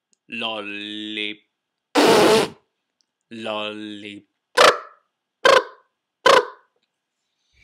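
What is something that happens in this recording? A man makes drawn-out vocal sounds close to the microphone.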